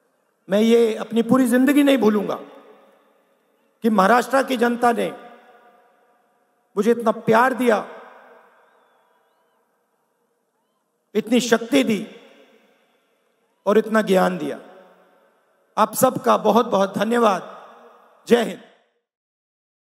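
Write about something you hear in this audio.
A middle-aged man speaks forcefully into a microphone, heard through loudspeakers with echo, in short bursts.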